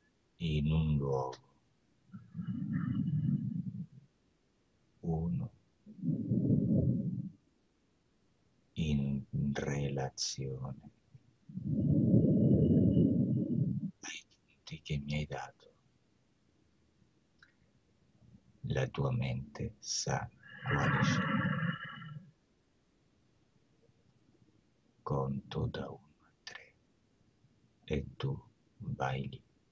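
A man speaks calmly and slowly over an online call.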